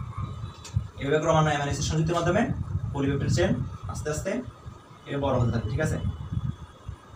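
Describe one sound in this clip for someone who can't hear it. A man speaks calmly and explains close by.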